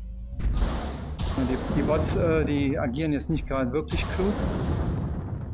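A man talks with animation, heard through a microphone.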